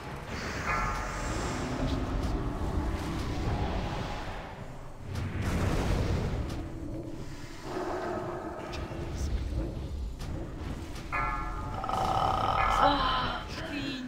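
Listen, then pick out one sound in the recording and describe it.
Magic spells whoosh and crackle in a noisy battle.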